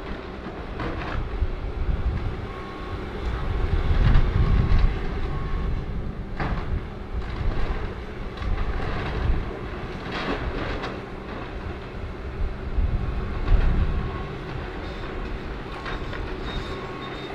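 Corrugated sheet metal roofing crumples and screeches as it is torn away.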